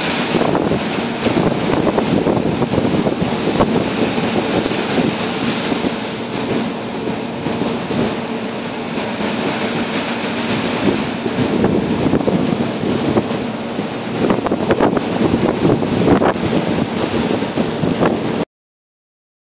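Rough sea waves crash and wash over a ship's deck.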